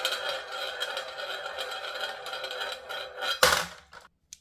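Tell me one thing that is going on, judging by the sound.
A marble rolls round and round a plastic funnel with a steady whirring rumble.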